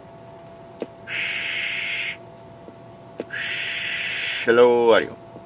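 A radio hisses with static in short bursts.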